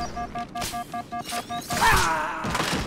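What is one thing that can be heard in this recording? An energy weapon fires in rapid, pulsing bursts.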